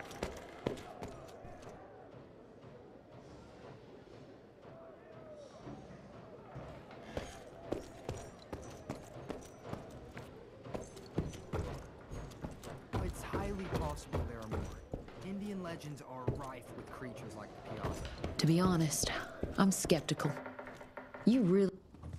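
Heavy footsteps thud across a wooden floor.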